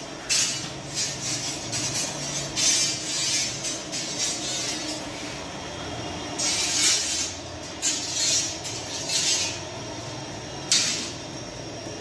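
A metal peel scrapes and rasps against the oven floor.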